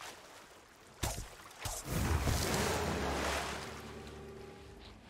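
Water splashes loudly as someone swims.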